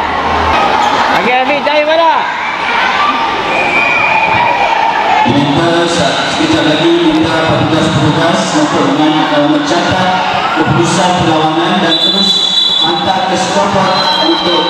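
Children shout and call out while playing in a large echoing hall.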